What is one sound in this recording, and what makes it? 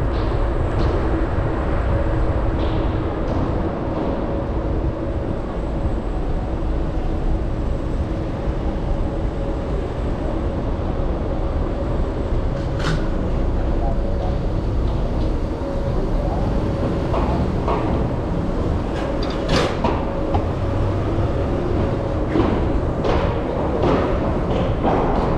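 City traffic rumbles and hums steadily close by.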